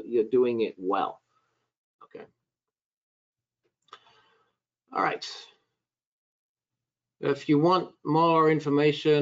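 An older man talks calmly over an online call, in short bursts with pauses.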